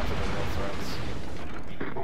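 Shells splash heavily into the sea.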